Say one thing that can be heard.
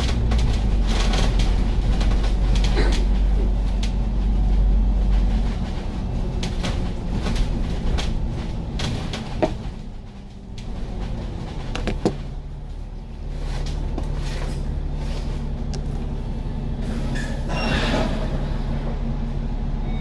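A bus engine rumbles low and steady as the bus drives along.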